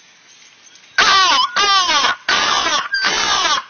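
A large flock of crows caws loudly and harshly overhead, outdoors.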